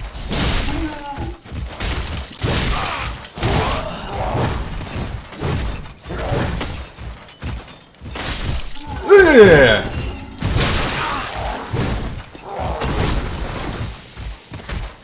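Heavy weapons strike and clash in a rapid fight.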